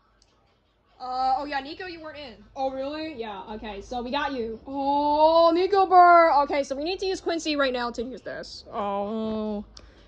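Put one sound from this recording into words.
A small phone speaker plays lively, high-pitched cartoon voices.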